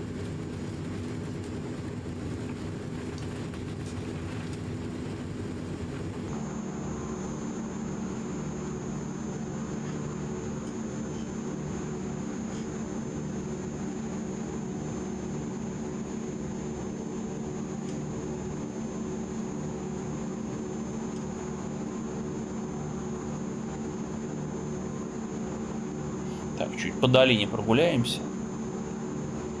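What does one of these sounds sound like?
Propeller engines drone steadily with a low hum.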